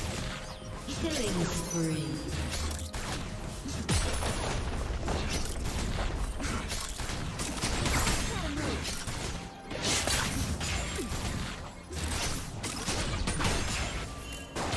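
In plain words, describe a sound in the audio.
Fantasy weapons clash with sharp hits.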